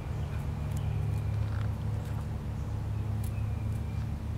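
A red squirrel scrabbles and rustles through dry wood chips.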